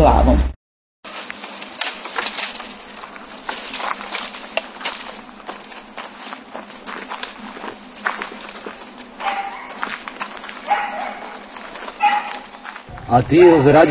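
Branches and dry leaves crackle and snap as they are dragged.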